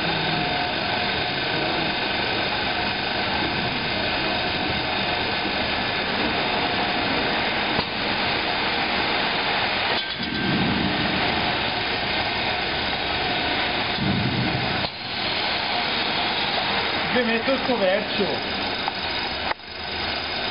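Factory machinery hums steadily all around.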